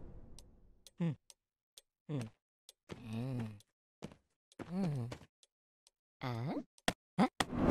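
A small creature makes short, wavering, questioning murmurs.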